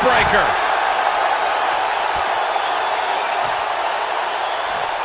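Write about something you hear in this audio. A crowd cheers loudly throughout.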